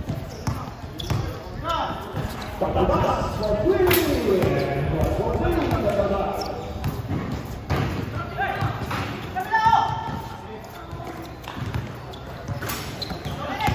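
Young men shout and call out to each other on an outdoor court.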